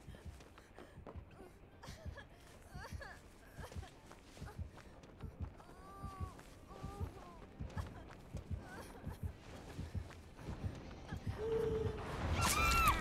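Footsteps crunch quickly over dry leaves.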